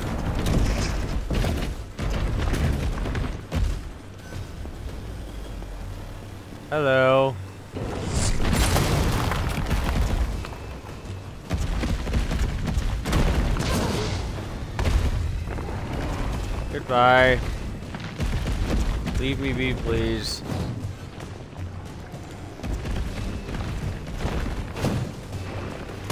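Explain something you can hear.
Footsteps run over pavement.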